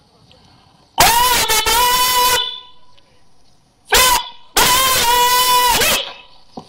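A bugle plays a ceremonial call outdoors, in long held notes.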